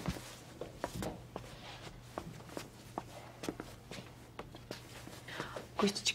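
Footsteps move across a hard floor.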